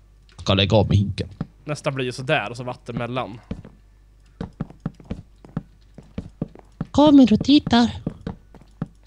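A man talks casually into a close microphone.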